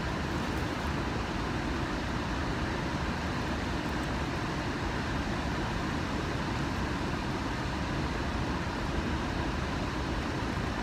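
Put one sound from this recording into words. Wind blows over the microphone outdoors.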